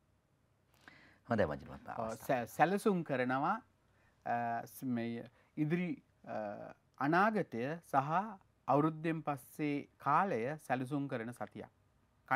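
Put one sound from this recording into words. A middle-aged man speaks clearly into a microphone, reading out with animation.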